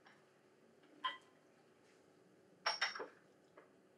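Porcelain cups clink as a tray is set down on a table.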